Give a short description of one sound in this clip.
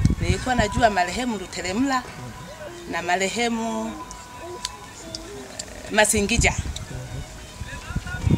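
A middle-aged woman speaks with animation, close by outdoors.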